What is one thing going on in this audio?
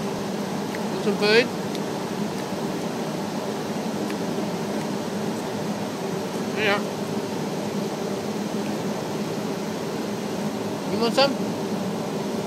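A bird gives short, sliding calls close by.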